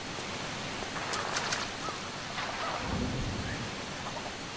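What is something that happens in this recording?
Something splashes into water.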